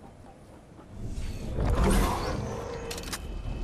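A rush of wind swells and fades as a game character drops through the air.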